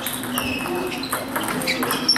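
A table tennis ball clicks as it is hit and bounces on a table.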